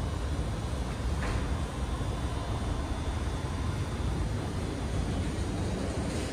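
A vending machine hums steadily.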